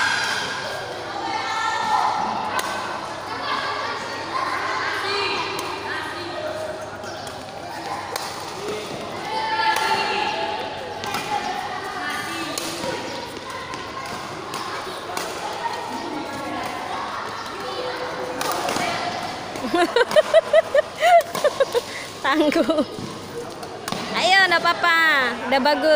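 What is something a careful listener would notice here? Rackets strike a shuttlecock back and forth in a large echoing hall.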